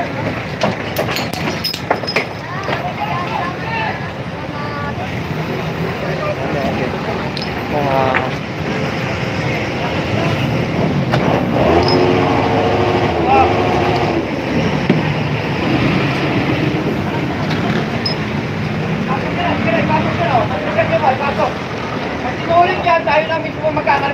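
Men talk and shout nearby.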